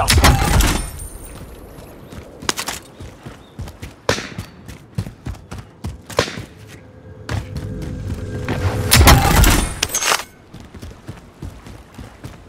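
Footsteps patter quickly on concrete and stone.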